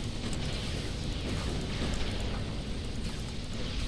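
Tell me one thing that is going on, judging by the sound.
Distant explosions and gunfire rumble from a battle.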